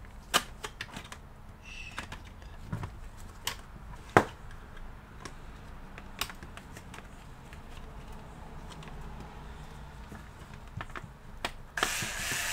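Plastic parts click and knock as a laptop is handled.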